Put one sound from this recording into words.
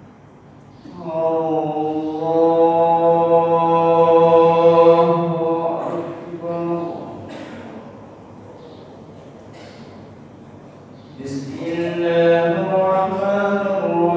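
A man chants loudly through a loudspeaker in a large echoing hall.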